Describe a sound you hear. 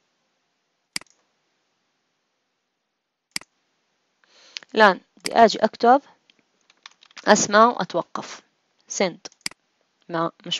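A mouse button clicks a few times.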